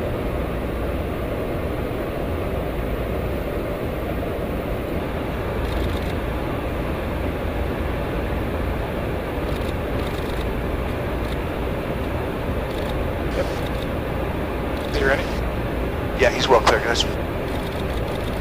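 Jet engines roar in flight with a steady rush of air.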